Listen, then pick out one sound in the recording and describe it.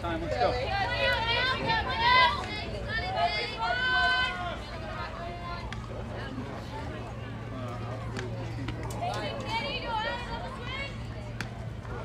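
Young women shout and cheer loudly from close by, outdoors.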